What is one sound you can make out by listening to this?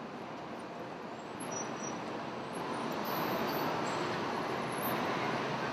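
A heavy truck engine drones as it drives past.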